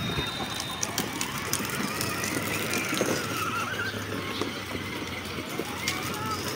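A small electric toy car whirs as it drives.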